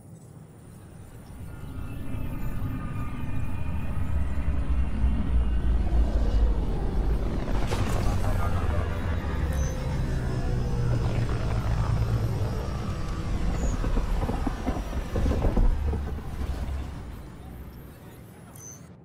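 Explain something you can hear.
A spacecraft's engines roar loudly as it flies in to land, then fade.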